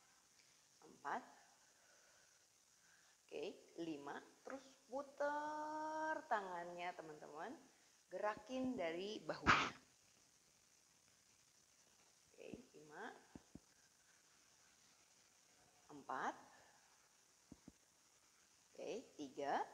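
A middle-aged woman speaks calmly and instructively, close by.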